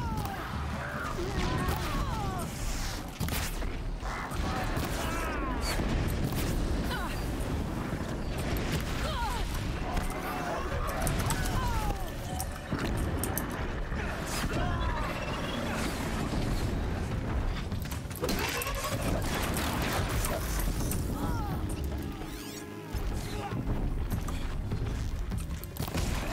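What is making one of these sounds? Machines screech and whine.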